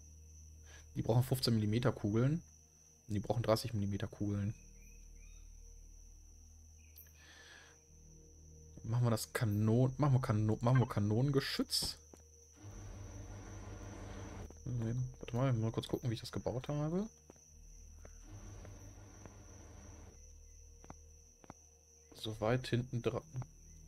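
A man talks calmly and close to a headset microphone, in bursts with pauses.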